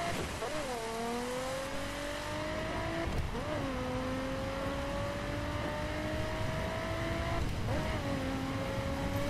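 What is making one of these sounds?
Tyres roll over a road with a steady rumble.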